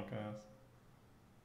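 A man speaks briefly into a microphone, close up.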